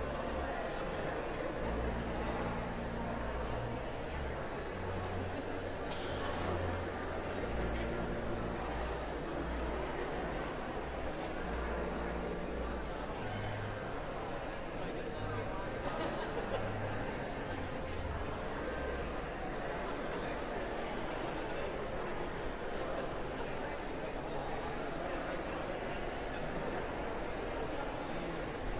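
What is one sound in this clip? A seated crowd murmurs and chats quietly in a large echoing hall.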